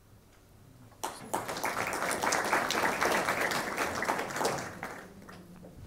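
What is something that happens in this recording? An audience claps its hands.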